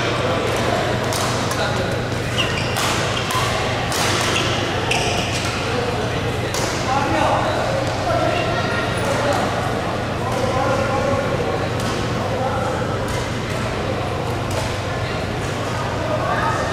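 Distant voices murmur in a large hall.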